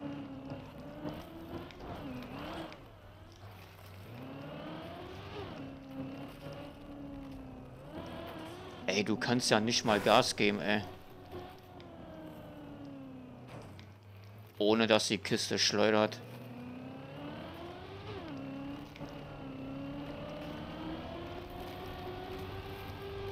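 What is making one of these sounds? A race car engine whines, rising and falling in pitch as it speeds up and slows down.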